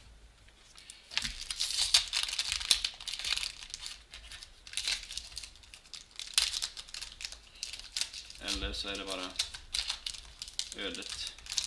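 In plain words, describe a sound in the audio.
Plastic card wrapping crinkles and tears as it is opened.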